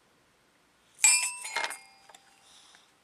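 A toy xylophone plinks a few notes.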